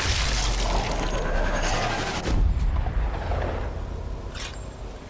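A deep rumbling boom rolls out and slowly fades.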